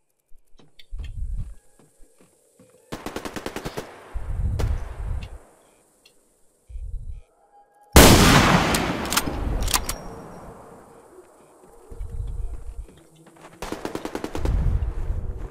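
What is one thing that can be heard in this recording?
Footsteps thud softly on the ground in short bursts.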